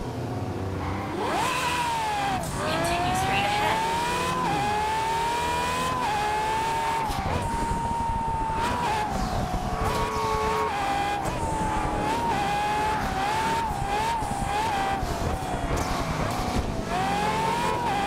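A sports car engine revs high and roars, shifting gears as it speeds up.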